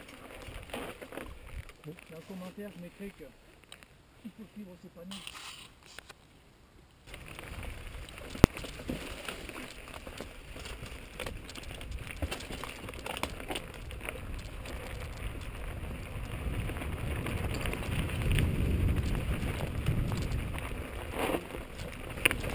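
Bicycle tyres roll and crunch over a rocky dirt trail.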